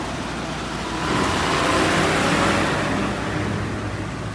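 A large truck drives past close by with a loud rushing roar.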